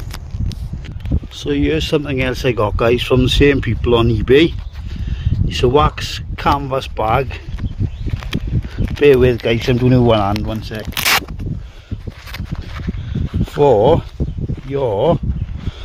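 Fabric rustles and scrapes as hands handle a pouch.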